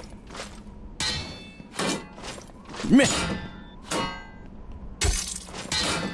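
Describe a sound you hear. Steel swords clash with sharp metallic rings.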